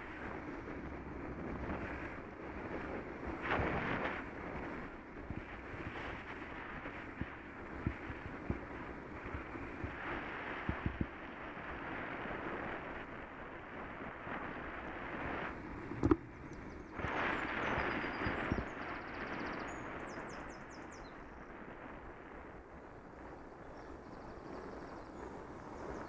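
Tyres roll steadily over a smooth path outdoors.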